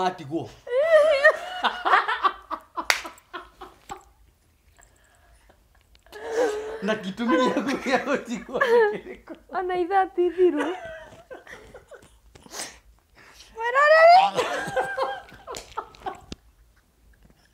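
A young woman laughs heartily nearby.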